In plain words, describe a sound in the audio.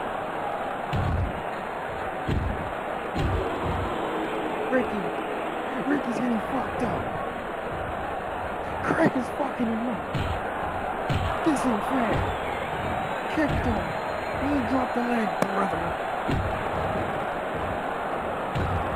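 Heavy bodies thud onto a wrestling mat.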